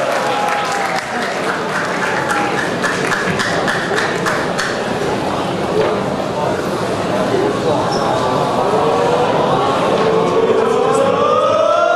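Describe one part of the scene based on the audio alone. A large crowd cheers and shouts in an echoing hall.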